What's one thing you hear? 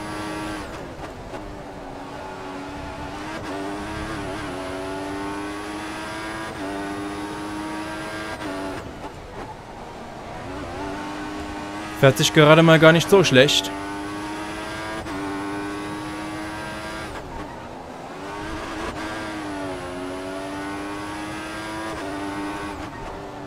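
A racing car engine revs high and drops in pitch with each gear change.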